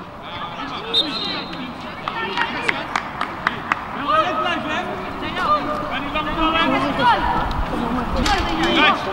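A crowd of men and women shout and call out outdoors.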